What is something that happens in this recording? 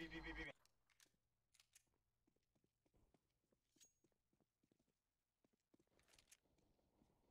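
A handgun clicks as it is drawn and put away.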